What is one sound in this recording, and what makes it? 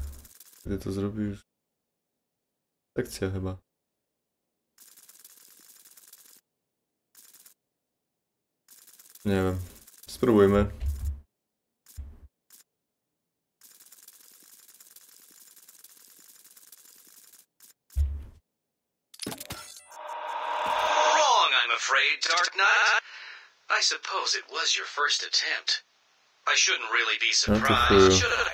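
A young man talks into a close microphone in short bursts.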